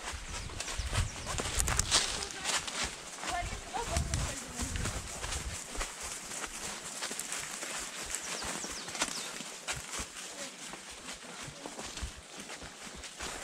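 A horse's hooves crunch through dry leaves at a walk.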